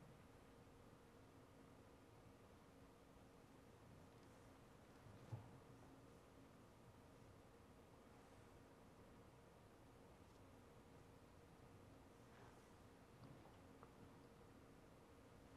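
Footsteps shuffle softly in a quiet hall.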